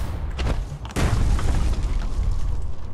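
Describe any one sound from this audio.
A gun fires loudly.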